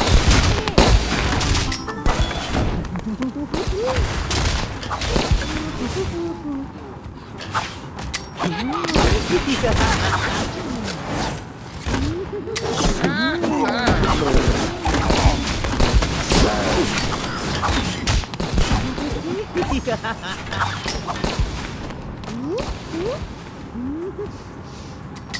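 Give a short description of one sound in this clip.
Cartoonish weapons fire and strike in quick bursts.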